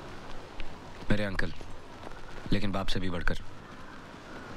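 An elderly man speaks firmly, close by.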